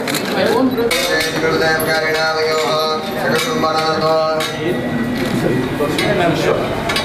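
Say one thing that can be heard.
A man chants a prayer in a steady, sung voice.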